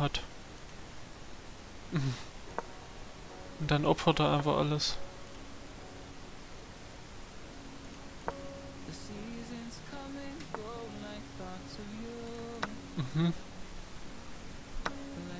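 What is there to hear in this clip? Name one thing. A short click sounds as a chess piece is set down.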